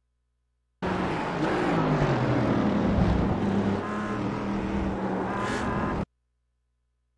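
Racing car engines roar and rev up and down close by.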